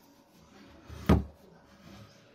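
A hand knocks sharply against a small loudspeaker.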